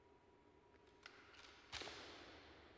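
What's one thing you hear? Boots stamp on a stone floor.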